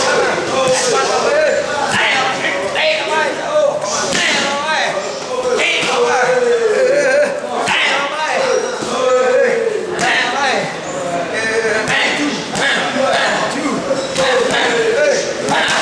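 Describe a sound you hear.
Gloved punches and kicks thud against padded mitts.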